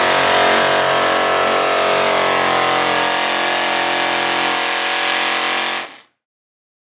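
A pulling tractor's engine roars loudly and steadily.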